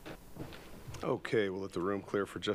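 A man speaks clearly and loudly into a microphone.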